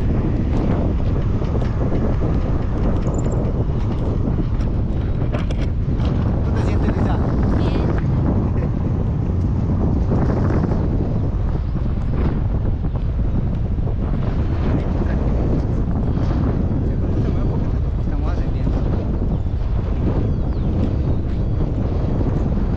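Strong wind roars and buffets loudly against a microphone.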